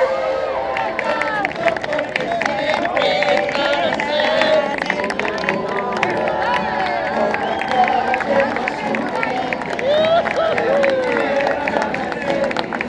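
A crowd cheers and claps nearby.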